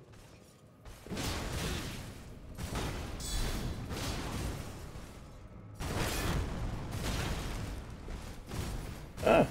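Fire bursts and roars in a loud blast.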